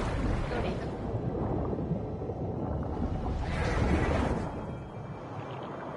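Water bubbles and rumbles in a deep, muffled way.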